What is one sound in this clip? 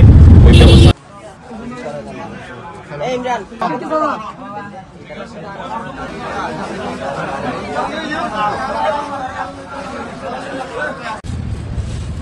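A crowd of men chatter in a busy indoor space.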